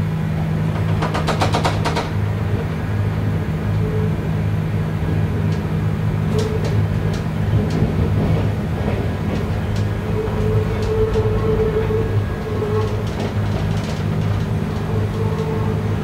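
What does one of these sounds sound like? Wheels click and clatter over rail joints and switches.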